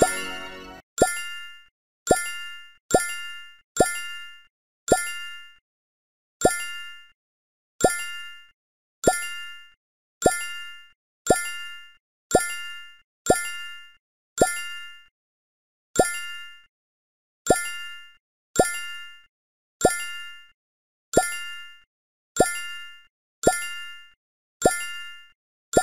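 A short bright chime pops each time a piece drops onto a stack.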